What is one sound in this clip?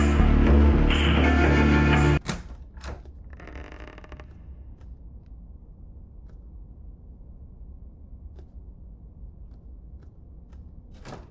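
Footsteps tap softly on a wooden floor.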